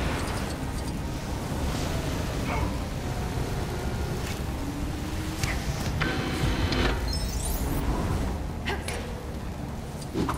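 Flames crackle and roar steadily.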